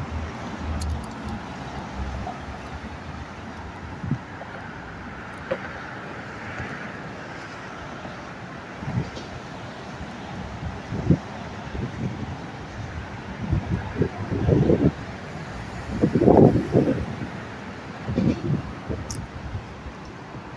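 Footsteps tread on pavement outdoors.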